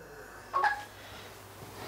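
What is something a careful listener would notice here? A wooden flute plays a brief note.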